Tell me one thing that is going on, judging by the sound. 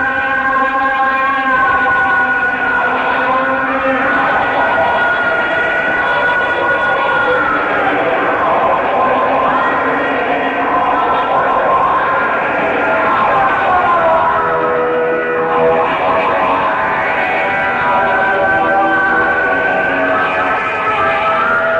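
An electric guitar plays a live solo through loud amplifiers.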